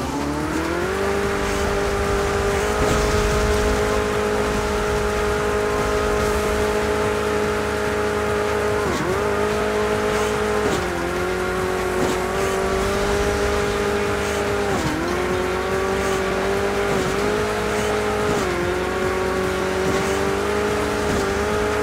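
A game's car engine revs steadily, dipping briefly now and then.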